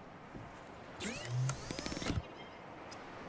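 A machine hatch slides open with electronic whirs and chimes.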